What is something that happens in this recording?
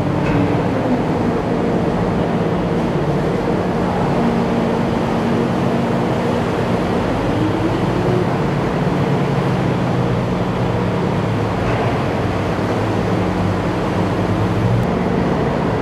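An amphibious assault vehicle's diesel engine drones as it swims through the sea.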